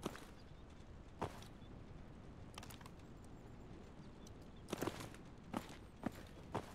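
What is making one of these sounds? Gunshots crack in the distance.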